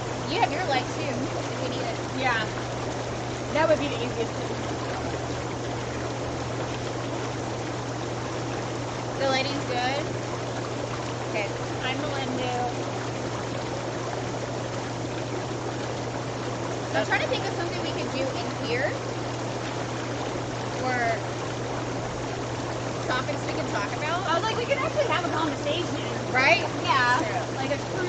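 Water bubbles and churns steadily in a hot tub.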